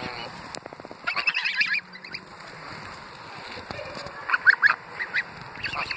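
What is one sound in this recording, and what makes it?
Geese honk loudly close by.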